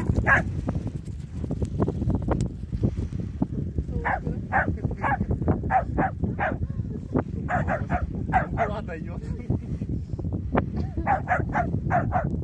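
A small dog barks repeatedly in quick bursts.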